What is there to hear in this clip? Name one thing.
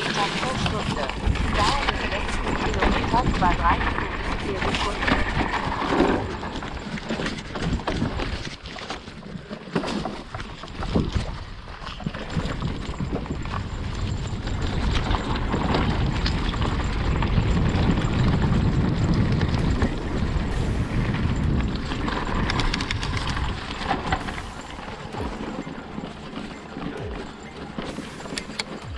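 Knobby tyres of a hardtail electric mountain bike crunch along a dirt trail.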